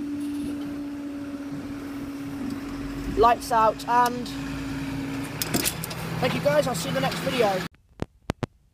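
A level crossing barrier swings down with a mechanical whir.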